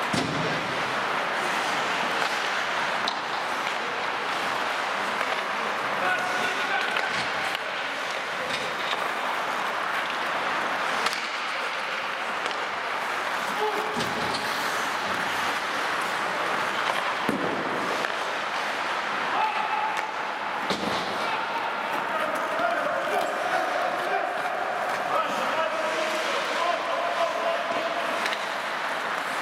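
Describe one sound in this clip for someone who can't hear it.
Skate blades scrape and hiss across the ice in an echoing rink.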